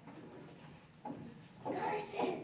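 A young girl speaks into a microphone over a loudspeaker.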